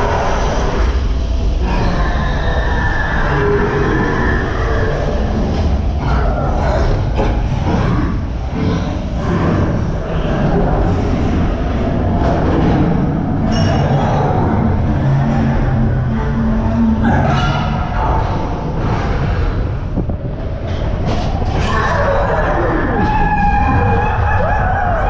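A roller coaster car rumbles and clatters loudly along its track.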